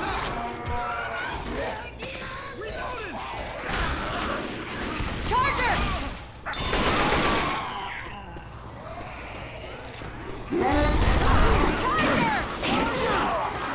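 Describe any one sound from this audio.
Zombies snarl and shriek close by.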